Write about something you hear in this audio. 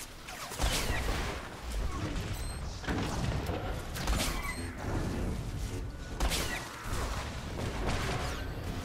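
Blasters fire in quick bursts.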